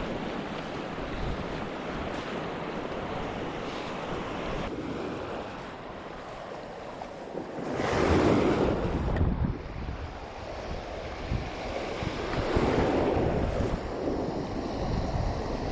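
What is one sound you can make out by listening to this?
Waves wash and break against a rocky shore, with louder surges now and then.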